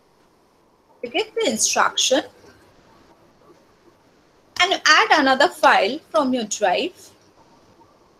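A young woman speaks calmly through a computer microphone.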